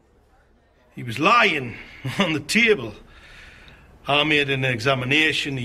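A man speaks loudly and forcefully close by.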